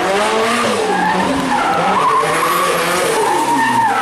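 Tyres squeal on tarmac as a car drifts.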